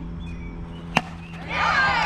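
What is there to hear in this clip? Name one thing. A metal bat cracks sharply against a ball.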